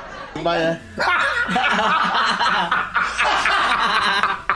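A second young man laughs heartily nearby.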